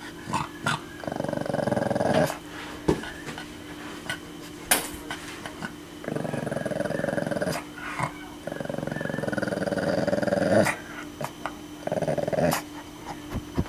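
A pug growls in bursts.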